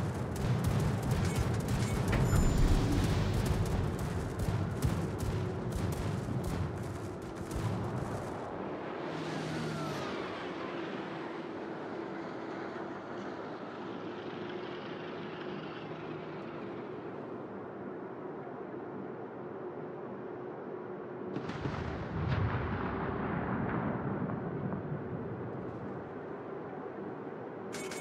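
A ship's engine hums steadily.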